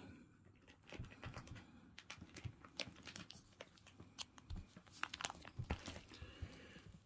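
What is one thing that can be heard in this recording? Plastic card sleeves crinkle as a binder page is handled.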